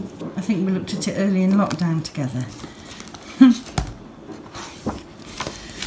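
Stiff album pages turn and rustle close by.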